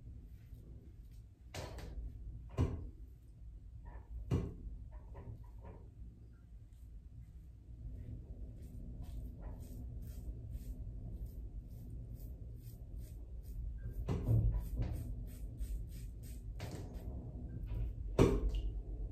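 A razor scrapes through stubble in short, rasping strokes.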